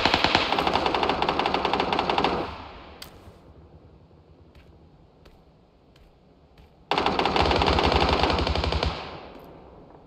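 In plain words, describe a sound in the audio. A rifle fires in rapid bursts, loud and close.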